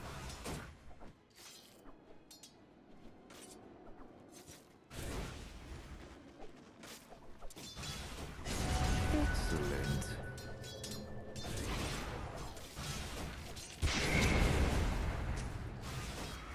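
Video game combat effects crash, whoosh and clang in a busy fight.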